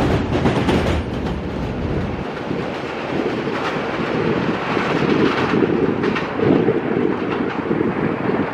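A subway train rumbles and rattles along elevated tracks.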